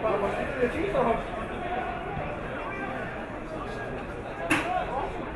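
Players shout to each other across the field.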